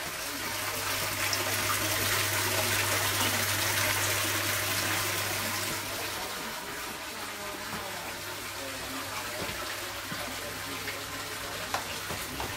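Water pours from a hose and splashes loudly into a tank.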